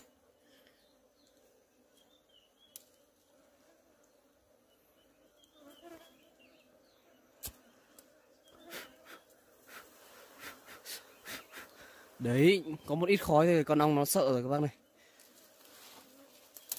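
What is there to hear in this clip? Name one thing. A swarm of bees buzzes steadily up close.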